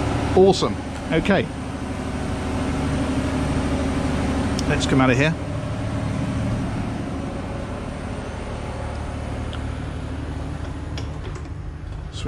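Machinery hums loudly and steadily.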